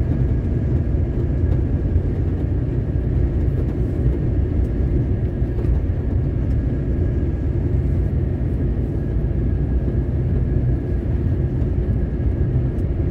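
A vehicle drives steadily along a paved road, its engine rumbling.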